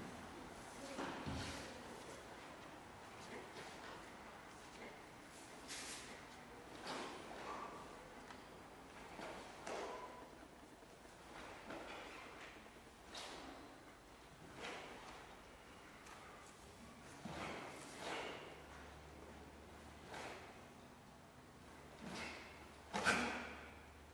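A cotton uniform snaps sharply with quick strikes, echoing in a large hall.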